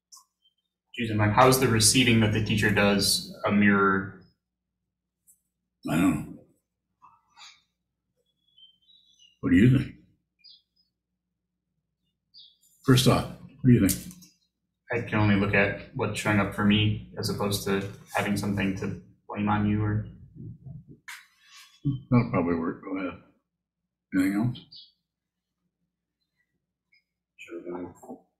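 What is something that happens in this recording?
An elderly man speaks calmly and slowly over an online call, with long pauses.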